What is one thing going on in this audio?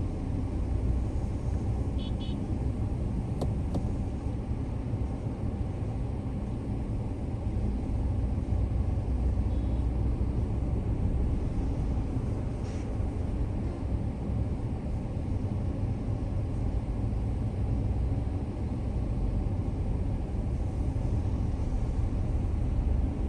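Traffic passes by on a nearby road.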